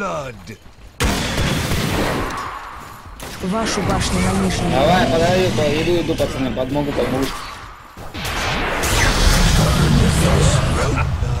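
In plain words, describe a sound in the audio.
Spells and blows clash and burst in a game fight.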